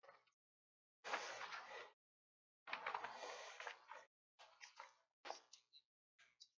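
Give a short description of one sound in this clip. Paper rustles as pages are turned.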